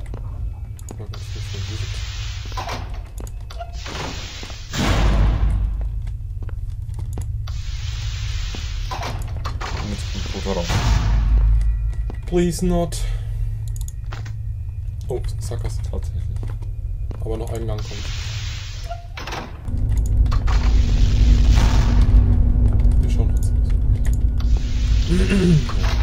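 Heavy sliding doors hiss open.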